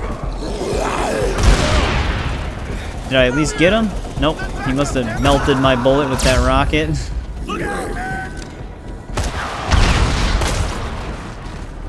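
A gun fires with loud, booming blasts.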